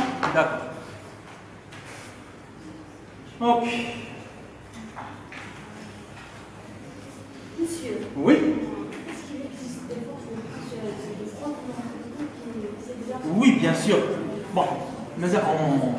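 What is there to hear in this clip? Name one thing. A man speaks calmly in an echoing room.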